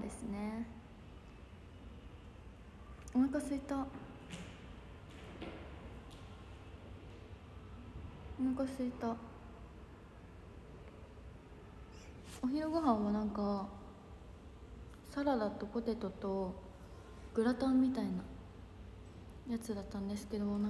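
A young woman speaks softly and casually close to a microphone, in short bursts with pauses.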